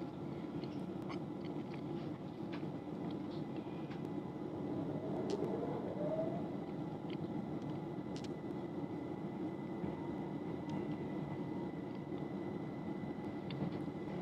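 A vehicle rumbles steadily while riding along.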